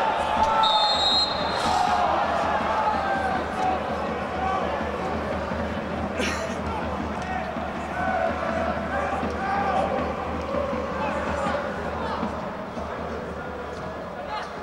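A crowd of spectators murmurs and chatters nearby in a large open stadium.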